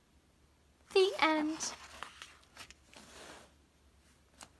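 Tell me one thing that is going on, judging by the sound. Paper rustles as a book is closed.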